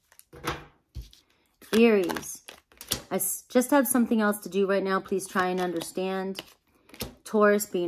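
Playing cards slide and tap softly against one another.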